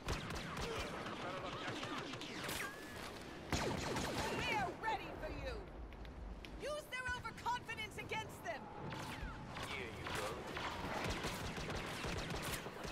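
Blaster shots zap and crackle in quick bursts.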